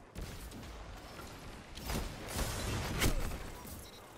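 Gunfire crackles in a video game.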